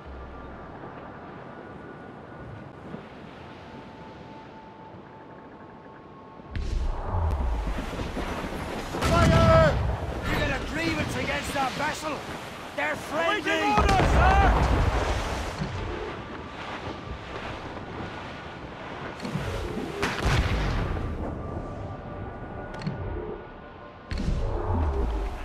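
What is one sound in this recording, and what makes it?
Waves wash and splash against a sailing ship's hull.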